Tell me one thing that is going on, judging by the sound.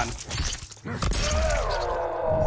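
A metal blade strikes flesh with a wet, crunching impact.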